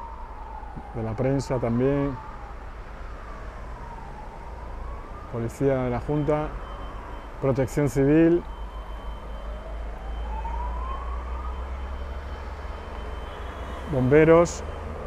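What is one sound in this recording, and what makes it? Emergency vehicles sound their horns in short, loud blasts.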